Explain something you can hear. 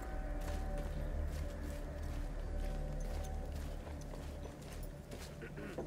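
Footsteps crunch over dirt and rubble.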